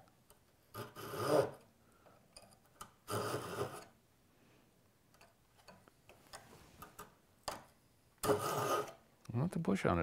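A hand saw rasps back and forth through wood.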